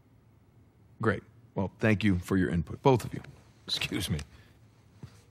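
A younger man speaks calmly, close by.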